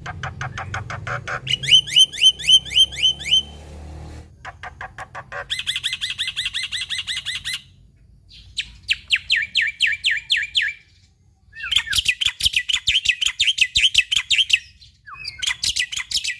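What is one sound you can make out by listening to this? A caged bird sings loud, rapid repeated chirps and whistles close by.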